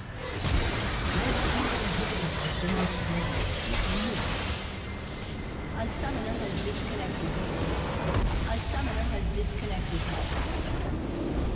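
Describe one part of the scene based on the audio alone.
Spell effects and blasts crackle and boom in a fast game battle.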